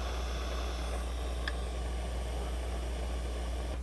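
A small screwdriver turns a screw with faint scraping clicks.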